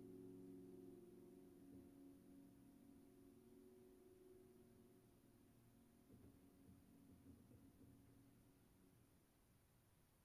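Soft, low piano notes ring out and slowly fade away.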